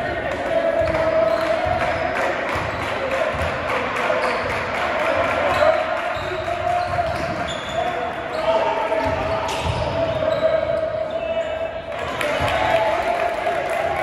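A basketball bounces on a wooden floor as players dribble.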